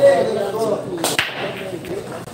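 A cue ball strikes a rack of pool balls with a sharp crack as they scatter.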